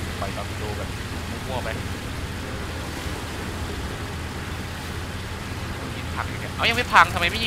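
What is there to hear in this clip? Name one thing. Water rushes and splashes against a speeding boat's hull.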